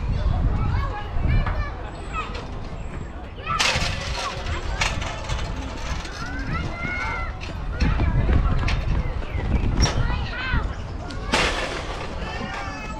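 Children shout and chatter at a distance outdoors.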